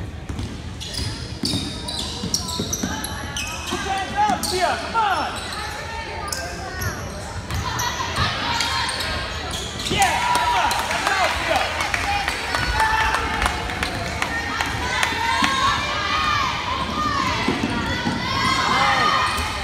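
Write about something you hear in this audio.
Sneakers squeak sharply on a hardwood court, echoing in a large gym.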